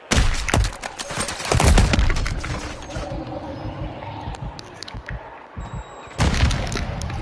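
A sniper rifle fires heavy shots.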